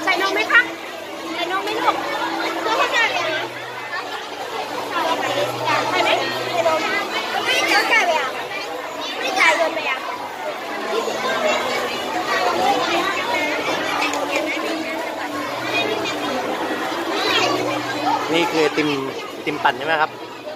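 A crowd of children and adults chatter nearby.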